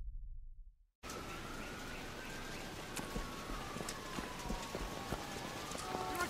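Footsteps run lightly on wet pavement.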